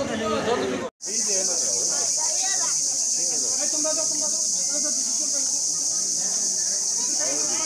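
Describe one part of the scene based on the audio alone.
A crowd of children cheers outdoors.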